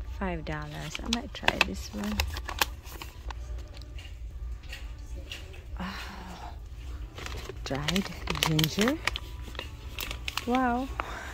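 A plastic snack bag crinkles as it is handled.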